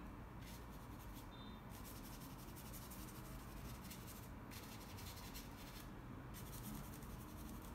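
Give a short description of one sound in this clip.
A paintbrush swishes and scratches softly across a canvas.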